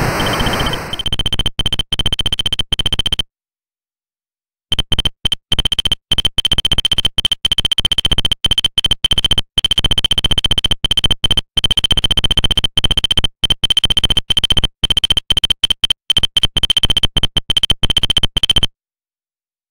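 Rapid electronic beeps tick steadily.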